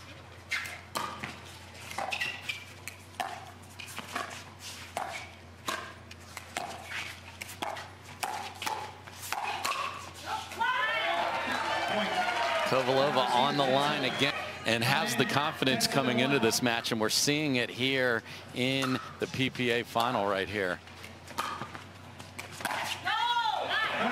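Paddles hit a plastic ball with sharp pops in a quick rally.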